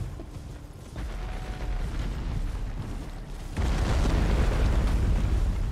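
A horse gallops over soft ground.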